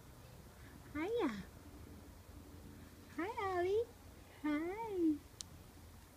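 A kitten mews in short, high cries close by.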